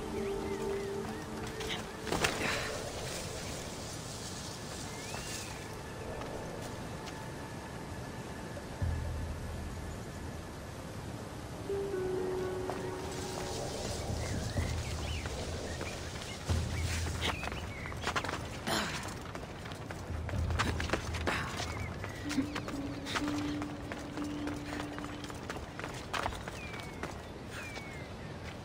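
Footsteps scrape and thud on rock and grass.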